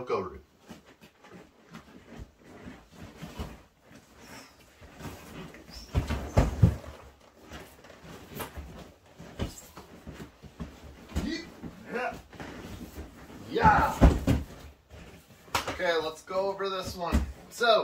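Bare feet shuffle on a mat.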